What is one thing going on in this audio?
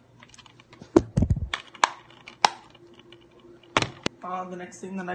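A plastic game case clicks and rattles in hands.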